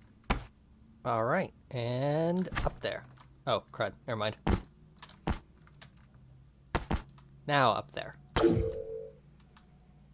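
A young man talks with animation into a close headset microphone.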